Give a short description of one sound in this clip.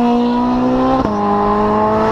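A Ferrari 458 Speciale V8 shifts up a gear with a sharp crack.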